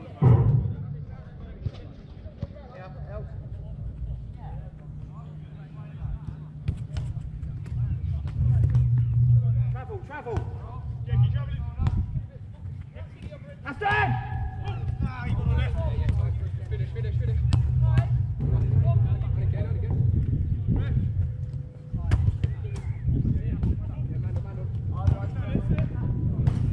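A football is kicked.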